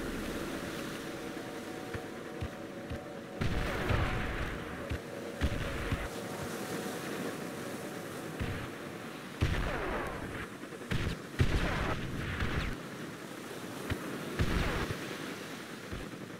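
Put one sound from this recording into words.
Gunfire crackles in the distance.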